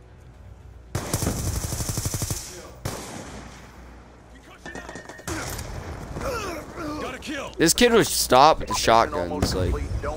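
Gunfire crackles from a video game.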